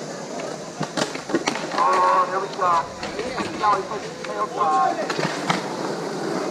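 Skateboards clack on concrete.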